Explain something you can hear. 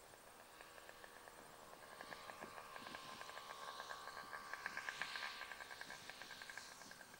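A propeller plane's engine drones overhead, growing louder as it approaches.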